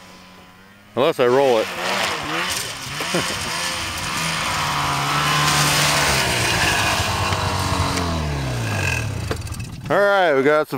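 A snowmobile engine roars as it approaches, then idles down.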